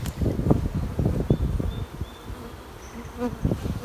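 A wooden hive frame scrapes and knocks as it is lifted out.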